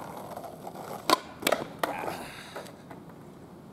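A skateboard clatters and slaps on the asphalt.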